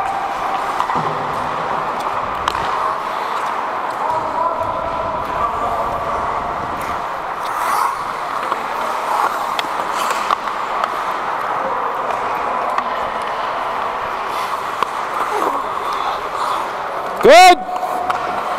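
Skate blades scrape and carve across the ice in a large echoing rink.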